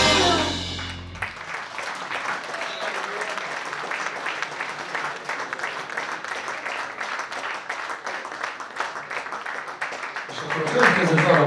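An audience claps and applauds in an echoing hall.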